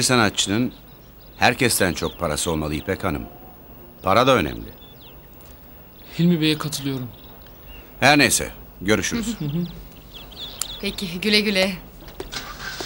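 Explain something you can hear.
A middle-aged man speaks calmly, close by.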